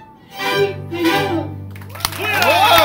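A string ensemble plays a final chord.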